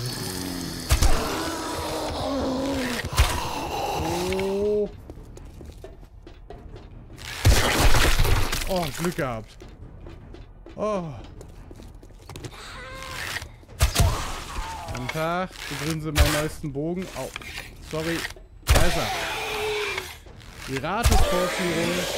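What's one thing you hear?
A bow snaps sharply as arrows are loosed.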